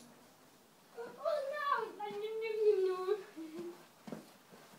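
A young child speaks loudly and with animation nearby.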